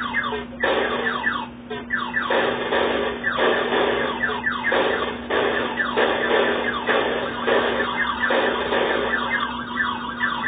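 Retro arcade laser shots fire in rapid bursts of falling beeps.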